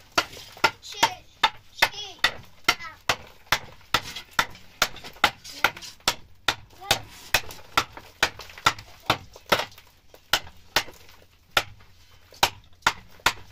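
A hammer strikes a plank overhead in a quick, steady rhythm.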